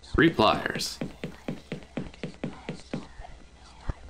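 Footsteps tread across a wooden floor.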